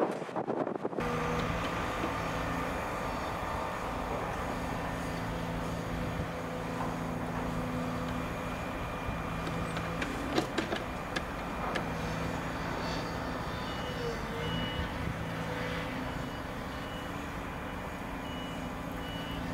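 A diesel excavator engine rumbles steadily in the distance.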